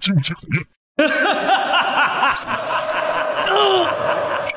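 An elderly man laughs loudly and wickedly.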